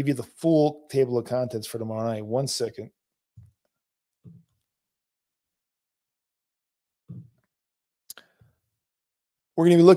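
A middle-aged man speaks calmly and closely into a microphone, pausing between phrases.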